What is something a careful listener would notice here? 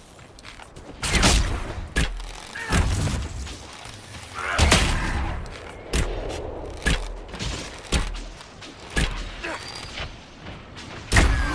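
Heavy weapon blows land in a fight, with sharp thuds and impacts.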